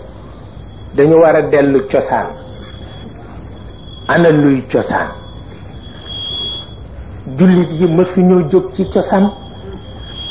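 An elderly man speaks slowly and solemnly into a microphone, in short phrases with pauses.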